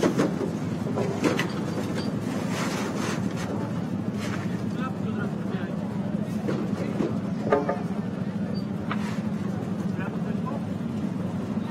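A crowd murmurs faintly far off outdoors.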